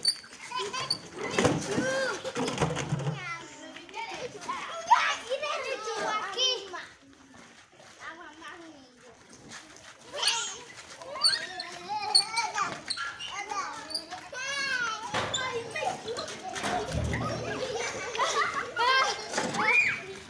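Young children shout and laugh excitedly close by.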